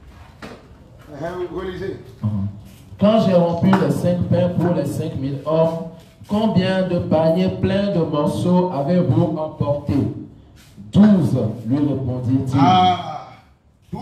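A young man reads aloud into a microphone, heard through a loudspeaker in an echoing hall.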